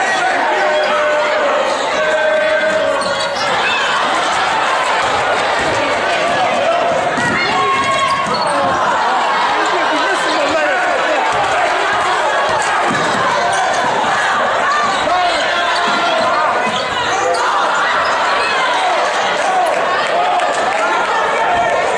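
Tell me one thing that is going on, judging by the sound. A crowd in a large echoing gym cheers and chatters throughout.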